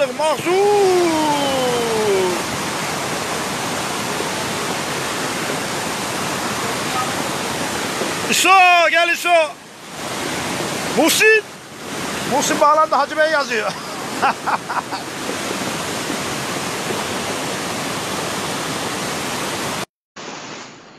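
Floodwater rushes and roars steadily.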